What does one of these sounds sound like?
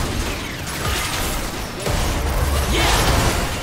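Characters strike each other with sharp hits.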